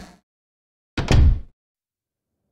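A heavy wooden door thuds shut.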